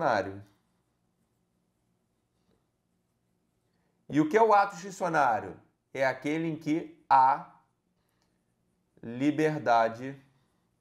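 A man speaks calmly and clearly, close to a microphone, in short phrases with pauses.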